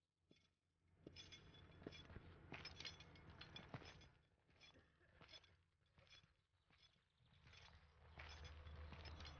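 Iron chains clink and rattle with each shuffling step.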